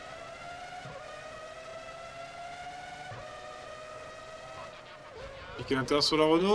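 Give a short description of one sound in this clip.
A racing car engine whines at high revs, shifting up through the gears.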